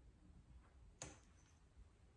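A metal ruler taps down on cloth.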